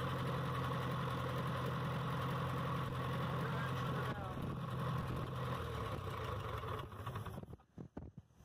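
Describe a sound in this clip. A tractor engine idles with a steady rumble, then cuts off.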